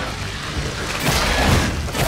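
Fire bursts with a loud whoosh.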